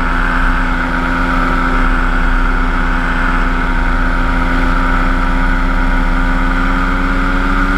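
A paramotor engine drones steadily up close.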